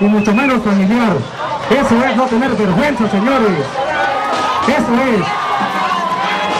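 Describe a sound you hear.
A crowd chants loudly.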